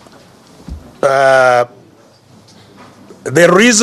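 A man speaks loudly through a microphone in short bursts.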